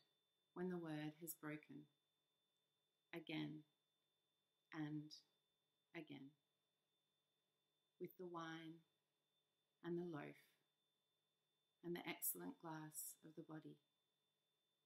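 A woman speaks calmly and slowly, close to a microphone, with pauses between phrases.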